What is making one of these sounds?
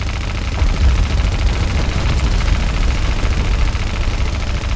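Heavy guns boom and rumble in a battle.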